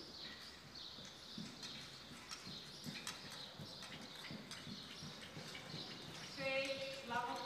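A horse's hooves thud softly on sand in a large hall.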